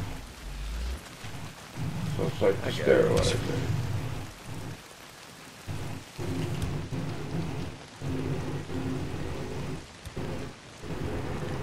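A man talks casually and close to a microphone.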